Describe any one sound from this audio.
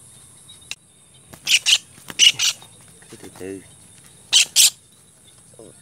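A bird flaps its wings wildly against dry leaves.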